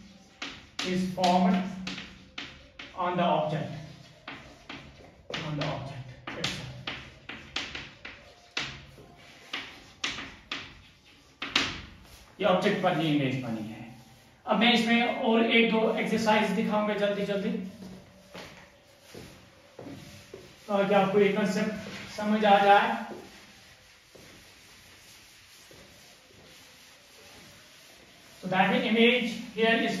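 A young man speaks calmly and clearly nearby.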